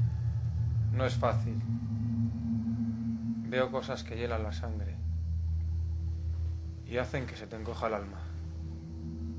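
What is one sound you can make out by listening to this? A young man speaks quietly and close by.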